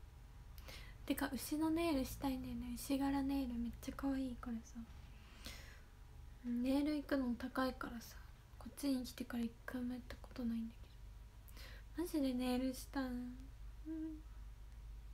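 A young woman speaks softly and calmly close to the microphone.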